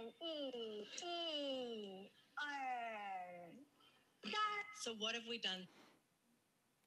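A woman speaks in a high, sing-song voice, heard through a recording.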